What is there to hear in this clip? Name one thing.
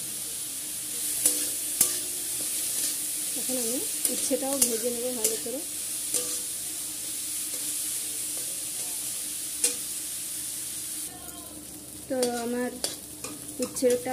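A metal spatula scrapes and clatters against a steel wok.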